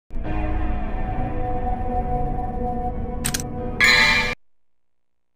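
Dramatic game music plays loudly and cuts off abruptly.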